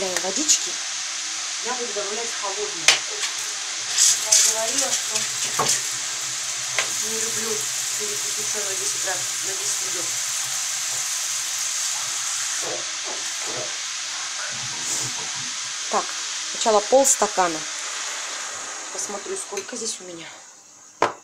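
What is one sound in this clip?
Water runs from a tap and splashes steadily.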